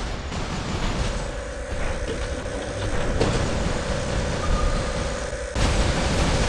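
Heavy energy guns fire in rapid bursts.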